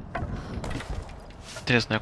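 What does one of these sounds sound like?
Wooden boards crack and clatter down.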